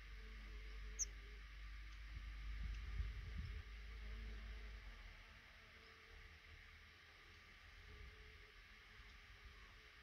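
Nestling birds cheep softly.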